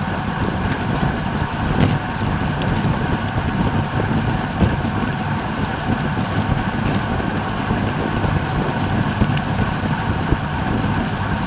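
Wind rushes loudly past a cyclist riding fast outdoors.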